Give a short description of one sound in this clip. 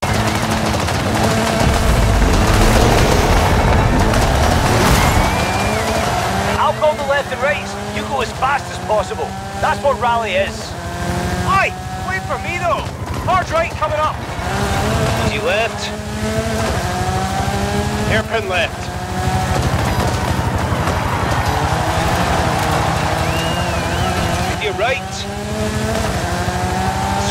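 A rally car engine revs hard and climbs through the gears.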